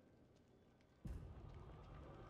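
Flames burst out with a sudden whoosh.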